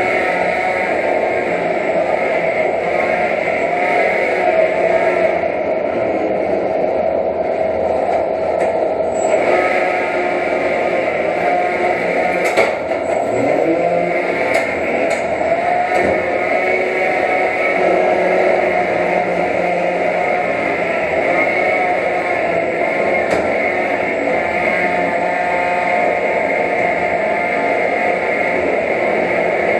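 Small robot motors whine as they drive.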